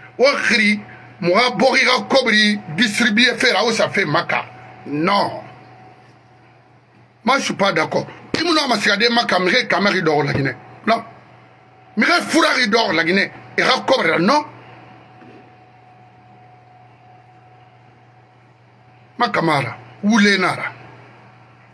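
A middle-aged man speaks with animation close to a microphone, in bursts with long pauses.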